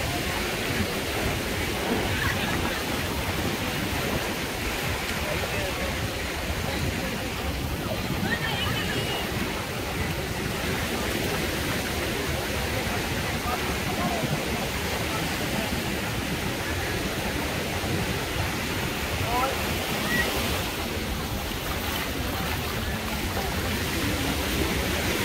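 A busy crowd of men and women chatters all around, outdoors in light wind.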